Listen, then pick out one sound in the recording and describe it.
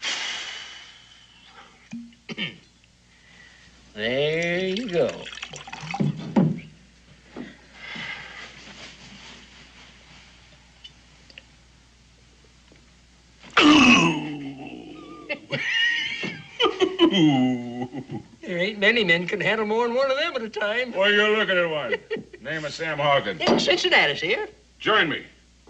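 An elderly man laughs and talks, close by.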